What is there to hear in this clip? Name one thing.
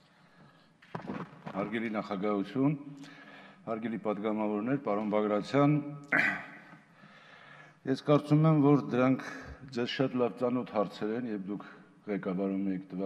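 A middle-aged man speaks forcefully into a microphone in a large hall.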